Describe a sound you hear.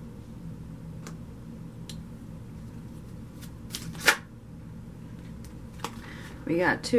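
Cards tap and slap lightly as they are handled and laid down.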